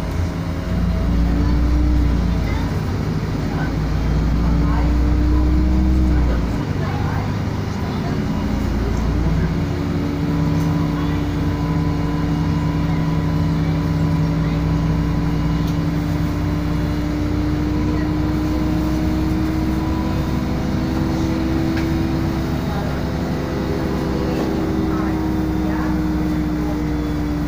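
The bus rattles and rumbles over the road.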